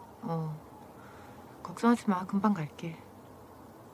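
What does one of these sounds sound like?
A young woman speaks softly into a phone.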